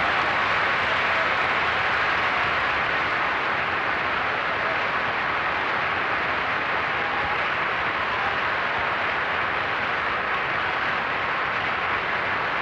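A large audience applauds steadily in a large echoing hall.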